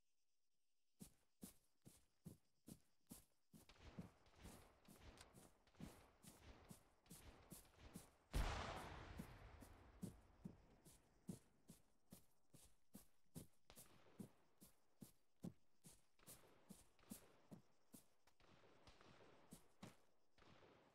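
Footsteps crunch steadily on gravel and grass.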